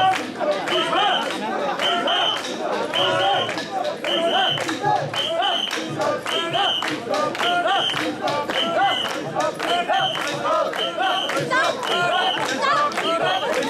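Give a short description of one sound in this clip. A crowd of men chant loudly together in a steady rhythm, close by.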